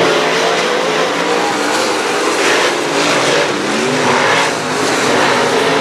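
Race car engines rise and fall in pitch as drivers work the throttle.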